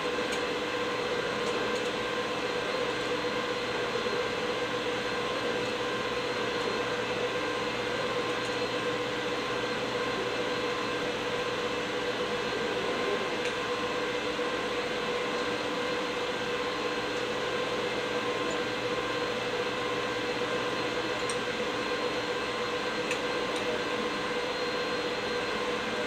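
Robot arm motors whir steadily as the arms swing.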